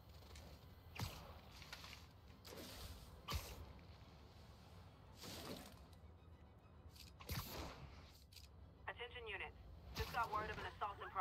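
A figure swinging on a line rushes through the air with quick whooshes.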